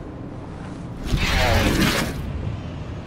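A blade slashes through the air with a sharp whoosh.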